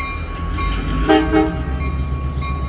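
A train horn blows briefly in the distance.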